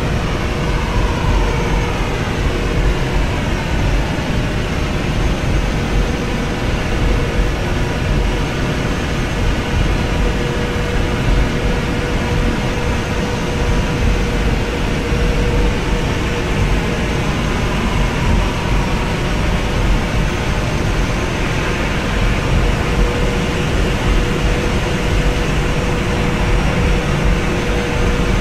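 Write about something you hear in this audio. Jet engines roar steadily as an airliner rolls along a runway.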